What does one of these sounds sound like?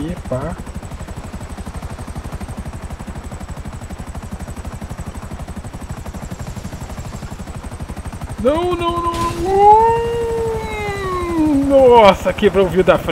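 A helicopter's rotor blades thump rapidly and steadily.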